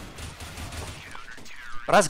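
A rifle fires in a quick burst.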